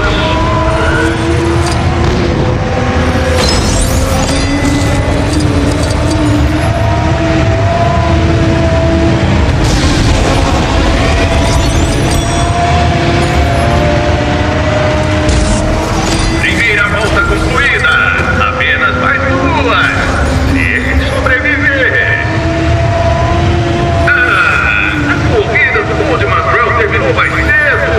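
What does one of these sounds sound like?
Game engines roar steadily as a racer speeds along.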